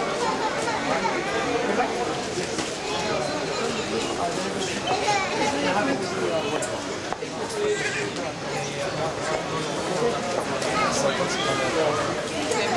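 A crowd of men chatter close by in a large echoing hall.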